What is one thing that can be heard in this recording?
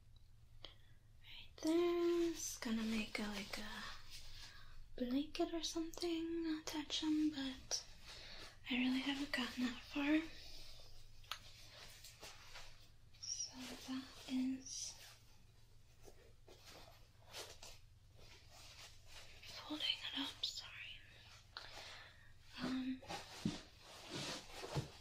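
Cloth rustles and flaps as it is handled and folded.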